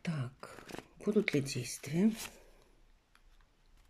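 A card is laid down on a table.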